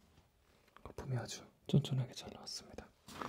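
A young man whispers softly, close up.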